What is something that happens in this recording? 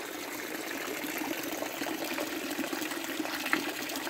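Water trickles and splashes steadily into a stone basin.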